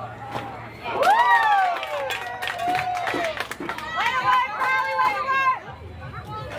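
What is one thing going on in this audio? Young girls shout and cheer excitedly from nearby.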